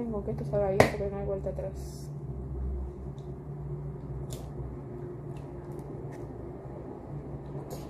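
An eggshell cracks.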